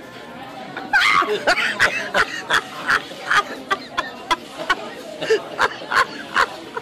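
An elderly woman laughs hard up close.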